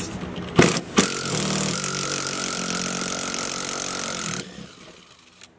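A cordless drill whirs steadily, then winds down.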